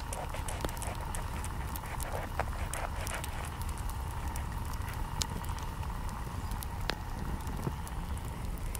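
Crusty bread crackles as hands break it apart.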